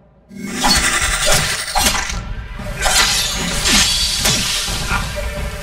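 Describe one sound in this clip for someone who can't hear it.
A large creature snarls and growls.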